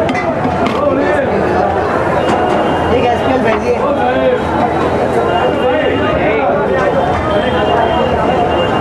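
A metal spatula scrapes and spreads food across a hot griddle.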